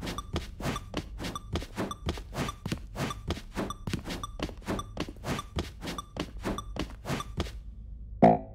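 Quick, even thuds of a character jumping repeat rapidly, then stop.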